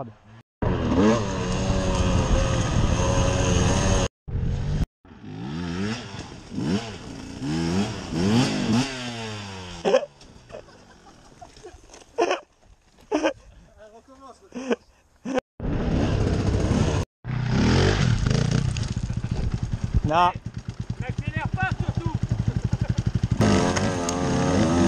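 A dirt bike engine roars and revs hard up close.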